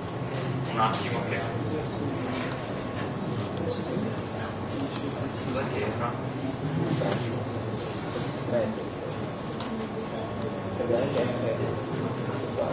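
A young man speaks calmly into a microphone in an echoing hall.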